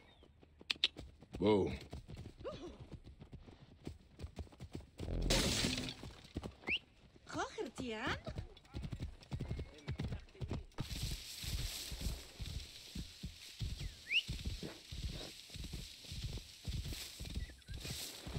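A horse's hooves thud steadily on the ground.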